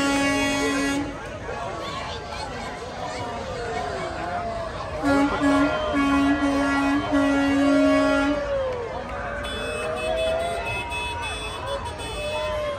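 A truck engine rumbles as it rolls slowly past.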